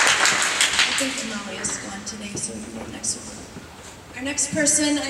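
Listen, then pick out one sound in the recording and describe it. A woman speaks through a microphone in a large echoing hall.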